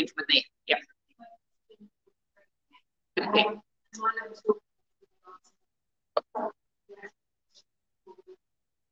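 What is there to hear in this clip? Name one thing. A woman speaks calmly into a microphone, in bursts with pauses.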